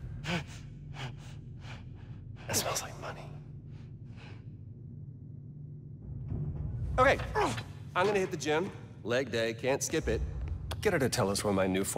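A man speaks casually and smugly, close up.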